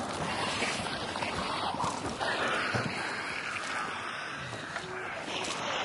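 Leafy branches rustle and swish as someone pushes through them.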